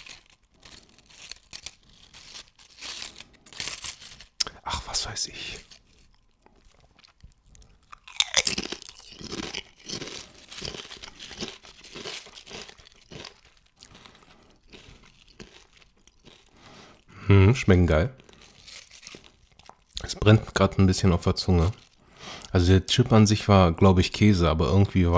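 Crisp tortilla chips crackle and rustle as fingers handle them.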